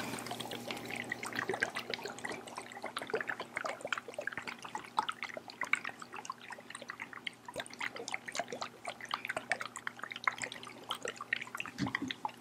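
Plastic objects tap and click rapidly close to a microphone.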